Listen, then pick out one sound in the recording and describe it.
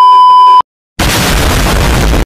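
A loud explosion roars.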